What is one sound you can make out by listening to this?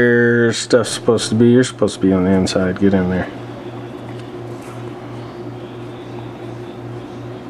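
A braided cable rustles softly as hands handle it.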